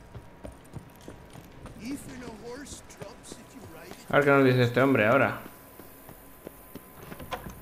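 Footsteps run quickly over wooden planks and stone.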